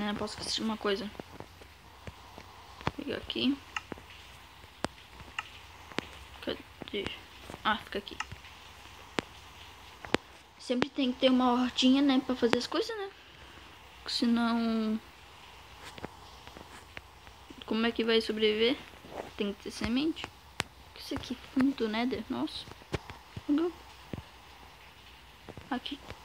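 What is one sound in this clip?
A boy talks with animation close to a microphone.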